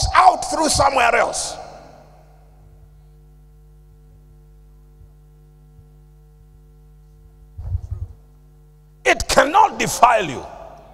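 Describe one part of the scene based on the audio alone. A man preaches with animation through a microphone, with echo in a large hall.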